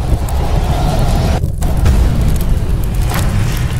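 Flames roar and crackle with a deep rumble.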